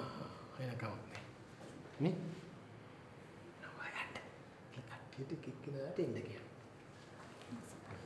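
An older man speaks firmly, close by.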